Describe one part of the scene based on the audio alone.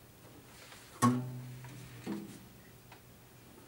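A guitar string is plucked and rings out.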